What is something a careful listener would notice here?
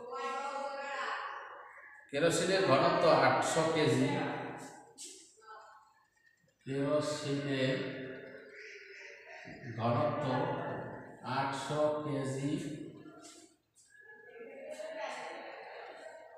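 A man speaks calmly, close by, explaining.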